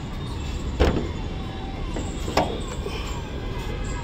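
A car's hood latch clicks.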